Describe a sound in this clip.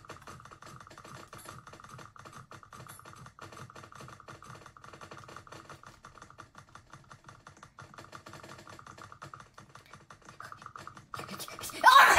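A toy blaster fires in rapid bursts.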